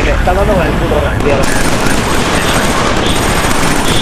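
Machine gun fire rattles in rapid bursts.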